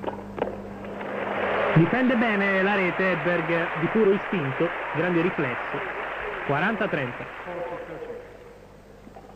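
A large crowd applauds and cheers loudly.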